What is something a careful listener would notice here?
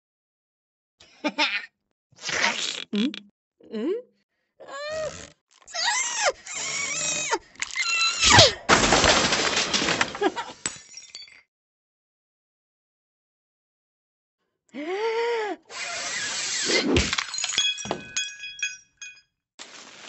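A cartoon cat squeals and chatters in a high, sped-up voice.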